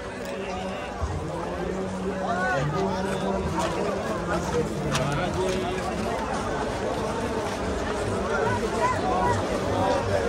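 Men's voices call out nearby in the crowd.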